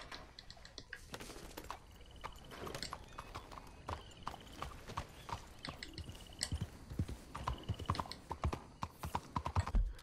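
A horse's hooves clop steadily on the ground.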